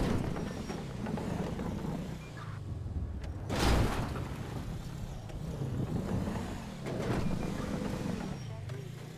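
A car engine revs and drones, rising and falling in pitch.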